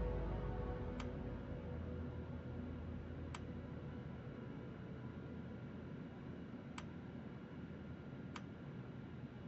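Short sharp clicks sound a few times.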